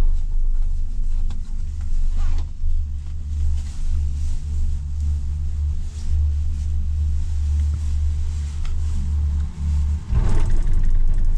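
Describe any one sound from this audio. A cable car cabin hums and rumbles steadily as it glides along its cable.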